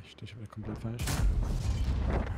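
A tank cannon fires with a loud boom.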